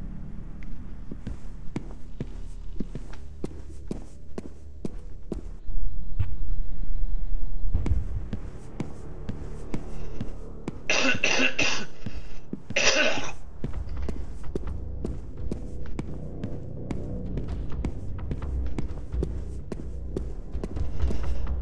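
Footsteps thud quickly on wooden floors and stairs.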